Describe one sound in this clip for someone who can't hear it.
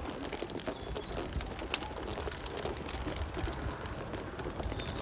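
Footsteps tap on a paved road outdoors.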